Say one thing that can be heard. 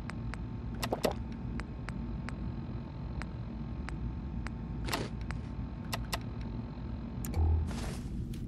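Menu selections click softly again and again.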